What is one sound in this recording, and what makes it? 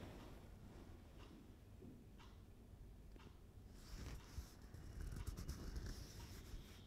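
A man breathes slowly and quietly.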